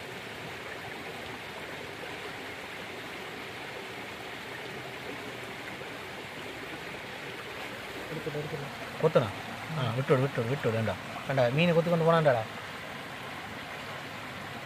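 Water ripples and trickles steadily over rocks outdoors.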